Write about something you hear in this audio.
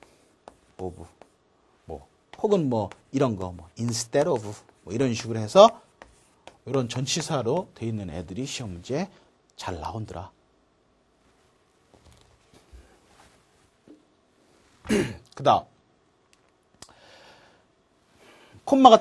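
A middle-aged man lectures with animation through a microphone.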